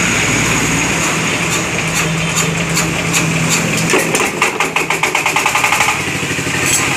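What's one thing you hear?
A diesel engine is cranked by hand, knocking faster and faster.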